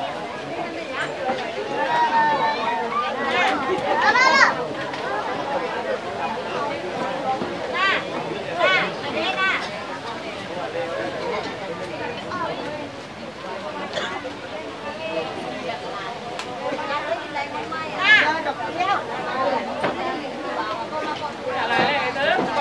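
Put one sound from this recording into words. An elderly woman speaks and chants with animation, close by.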